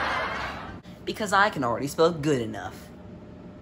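A young boy talks with animation nearby.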